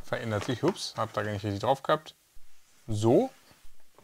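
A cardboard box slides and scrapes against a desk.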